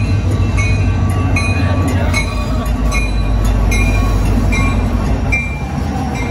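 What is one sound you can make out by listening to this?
A diesel locomotive engine roars loudly close by.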